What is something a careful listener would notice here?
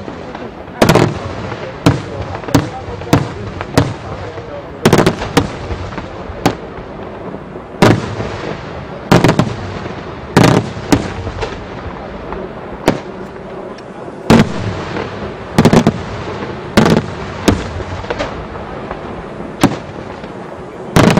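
Fireworks bang loudly overhead in rapid, uneven bursts.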